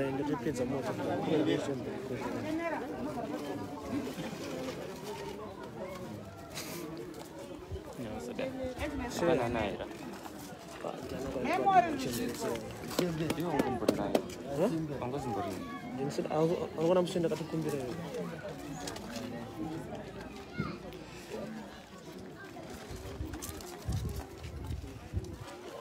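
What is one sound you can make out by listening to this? Plastic bags rustle as groceries are handed over.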